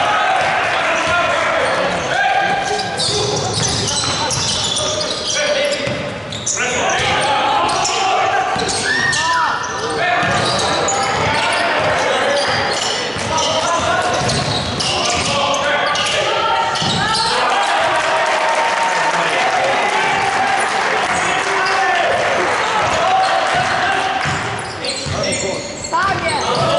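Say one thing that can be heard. Young men shout to each other in an echoing hall.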